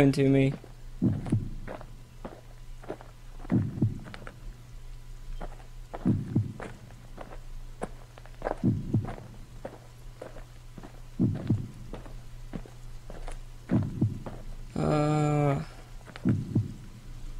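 Heavy footsteps crunch slowly on stone.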